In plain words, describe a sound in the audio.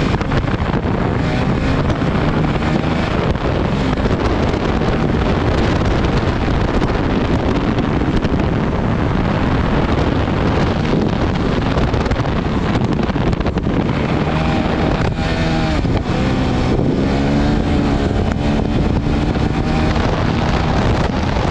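A dirt bike engine roars and revs up and down close by.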